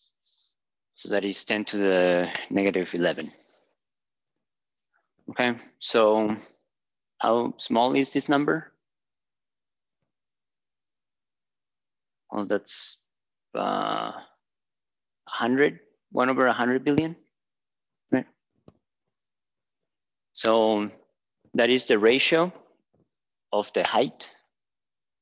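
A man speaks calmly, as if lecturing.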